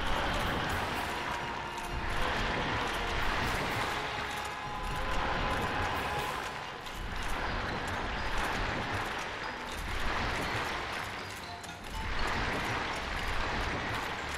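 A dragon's icy breath roars and hisses.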